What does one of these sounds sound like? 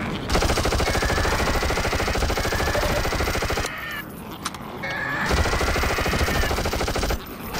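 A monster screeches and growls.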